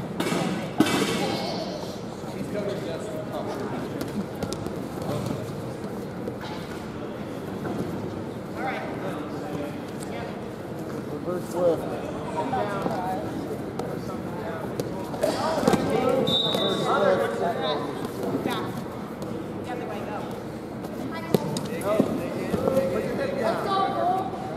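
Voices of spectators and coaches call out in a large echoing gym.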